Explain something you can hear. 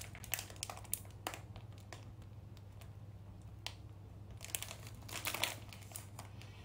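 A plastic wrapper crinkles close by.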